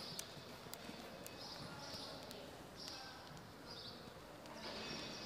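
A horse trots over soft sand with dull hoofbeats.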